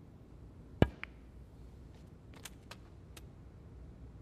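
Snooker balls click softly against each other.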